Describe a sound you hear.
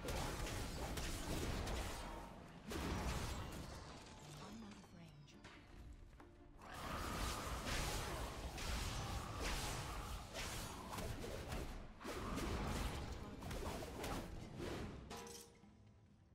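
Game combat sounds clash and hit loudly.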